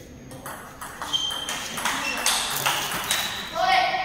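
A ball bounces with quick hollow clicks off a table and paddles in a rally.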